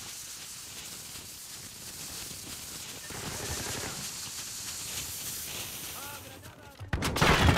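A smoke grenade hisses steadily.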